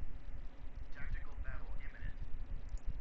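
A man talks through a microphone.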